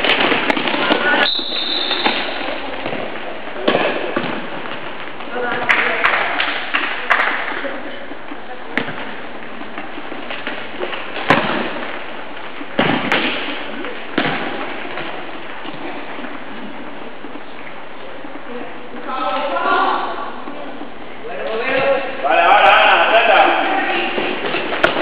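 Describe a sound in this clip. A ball thuds as players kick it on a hard floor, echoing in a large hall.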